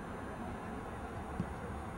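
A soccer ball is kicked with a dull thud.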